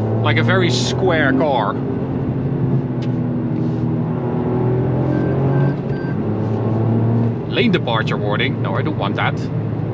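A car engine hums steadily, rising and falling slightly in pitch.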